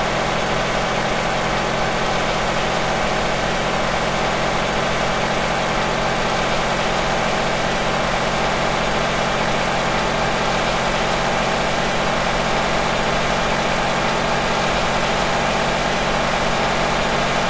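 A truck engine drones steadily as it speeds up.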